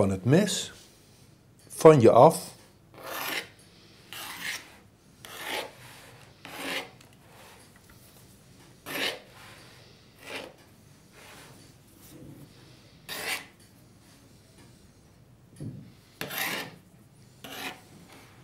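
A knife scrapes along the rim of a metal pan, trimming dough.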